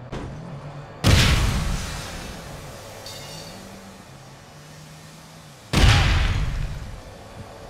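A grenade bursts with a loud, hissing blast.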